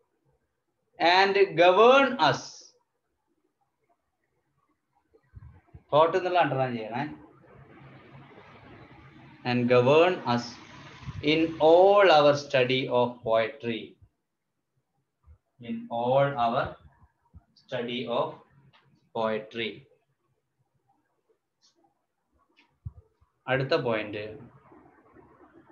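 A man speaks calmly and slowly, close by, with long pauses.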